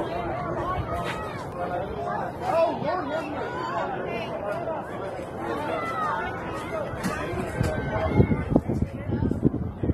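Young girls shout and cheer outdoors.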